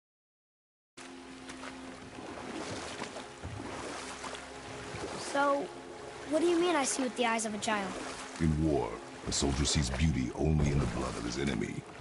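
Oars splash gently in calm water as a boat is rowed.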